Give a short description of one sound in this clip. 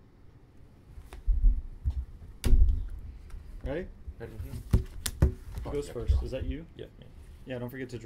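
Cards are tapped and set down on a wooden table.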